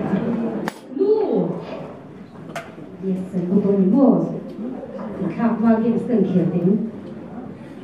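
A woman speaks into a microphone, heard through loudspeakers in a large echoing hall.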